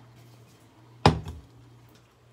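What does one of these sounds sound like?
A pan clunks down onto a stovetop.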